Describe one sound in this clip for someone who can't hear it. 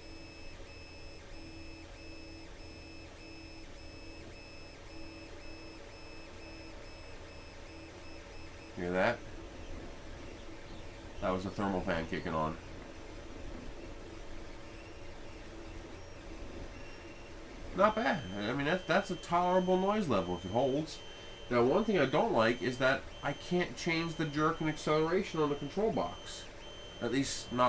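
A 3D printer whirs and hums steadily.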